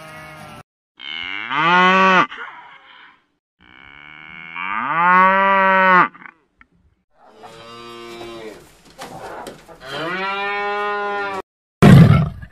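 Cows moo loudly in long calls.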